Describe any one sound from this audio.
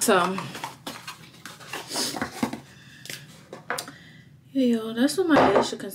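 Cardboard packaging rustles and crinkles as it opens.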